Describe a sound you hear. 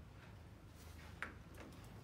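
Papers rustle on a desk.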